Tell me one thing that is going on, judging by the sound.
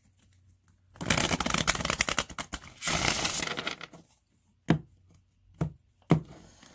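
Playing cards riffle and flutter as they are shuffled.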